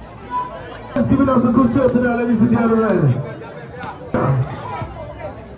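A crowd of spectators shouts and cheers nearby.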